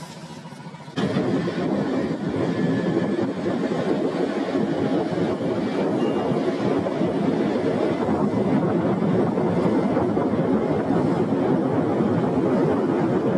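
A scooter engine runs as the scooter rides along a street.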